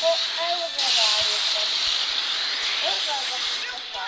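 An energy blast roars and bursts.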